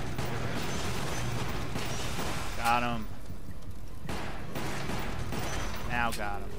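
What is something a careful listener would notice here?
A pistol fires several sharp shots.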